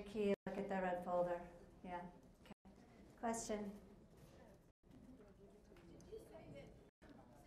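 A woman speaks into a microphone through loudspeakers in a large room.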